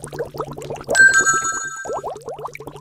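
A bright chime rings once.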